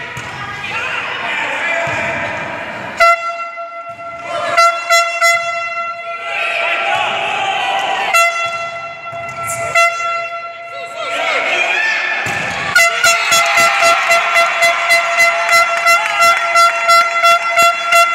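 Young women players call out to each other across an echoing hall.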